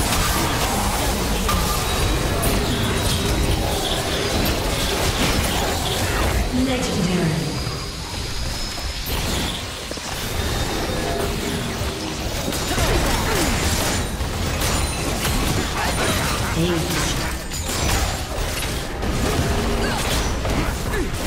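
Spell effects crackle and blast in rapid bursts.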